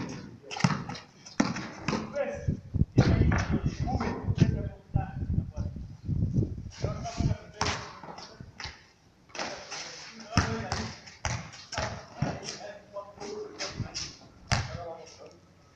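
A basketball bounces on hard concrete outdoors.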